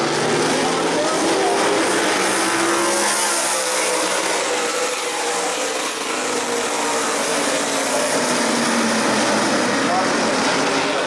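Race car engines rise and fall in pitch as cars pass close by.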